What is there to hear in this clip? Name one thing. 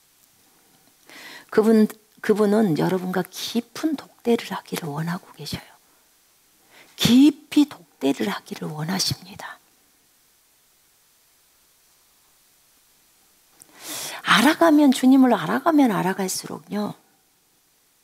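A middle-aged woman speaks with animation into a close microphone, pausing between phrases.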